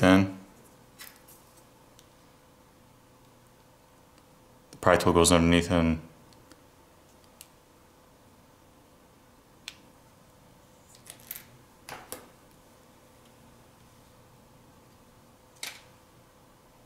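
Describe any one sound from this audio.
Small plastic parts click and tap as a phone is pried apart by hand.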